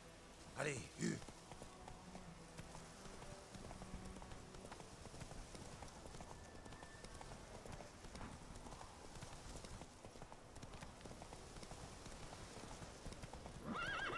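A horse gallops with rapid hoofbeats on soft ground.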